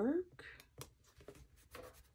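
Fingers press and rub softly on a paper page.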